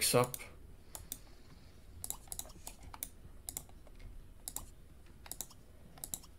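Short soft clicks of a game menu sound now and then.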